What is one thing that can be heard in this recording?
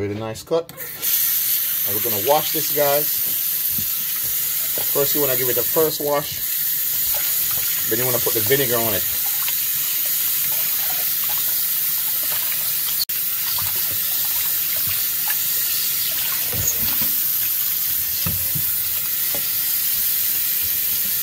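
Tap water pours steadily into a metal bowl.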